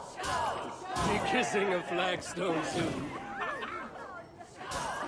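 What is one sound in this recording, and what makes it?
A man shouts with excitement close by.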